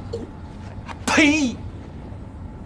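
A man shouts back excitedly.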